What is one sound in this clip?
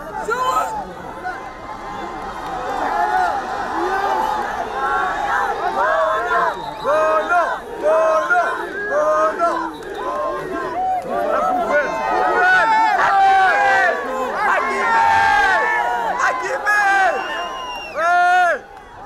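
A large crowd chants and cheers loudly outdoors.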